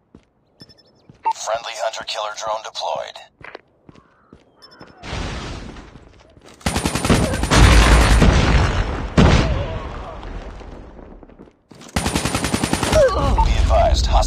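An automatic rifle fires in a video game.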